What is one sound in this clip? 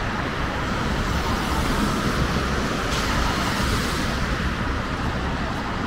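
A car drives past, its tyres hissing on a wet road.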